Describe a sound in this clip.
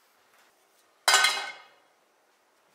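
A pan clatters down onto a stove grate.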